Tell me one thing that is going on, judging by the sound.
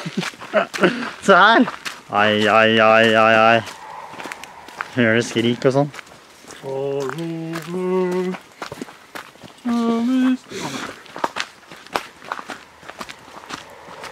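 Tyres crunch over a dirt trail.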